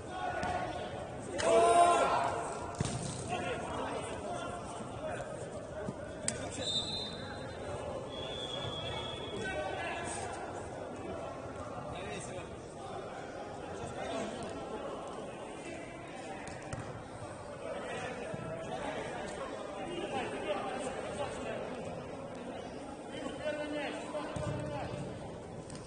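Men shout and call out across an echoing indoor hall.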